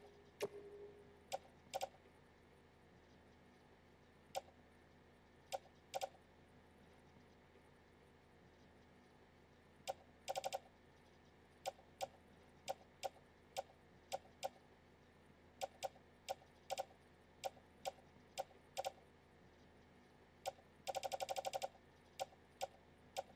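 Game menu clicks tick sharply as a list is scrolled, sometimes in quick bursts.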